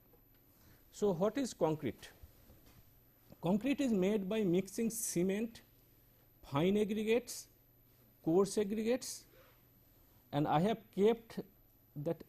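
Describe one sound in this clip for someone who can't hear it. A man speaks calmly, as if lecturing, close to a microphone.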